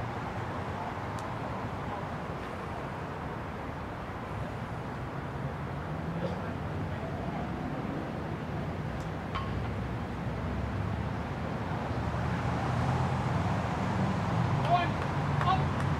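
A crowd of people chatters far off outdoors.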